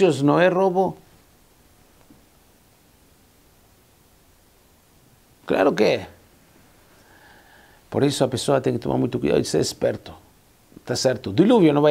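A middle-aged man speaks calmly and expressively into a close microphone, with pauses.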